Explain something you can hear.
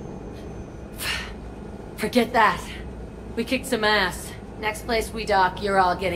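A young woman speaks with a brash, teasing tone.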